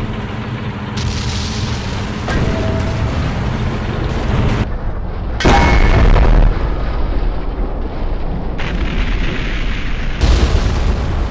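Shells explode with loud booms.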